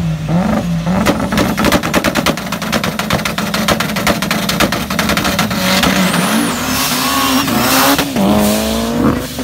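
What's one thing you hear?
Several cars roar away at speed down a road.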